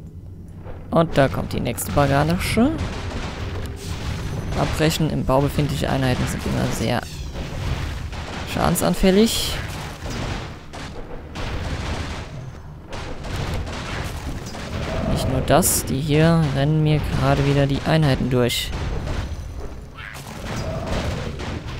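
Swords clash and strike in a fantasy game battle.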